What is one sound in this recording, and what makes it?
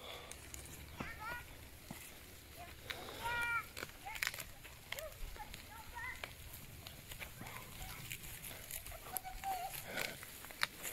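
Young boys call out to each other outdoors.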